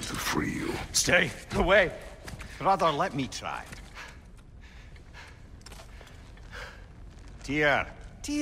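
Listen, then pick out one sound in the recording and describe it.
A deep-voiced man speaks gruffly.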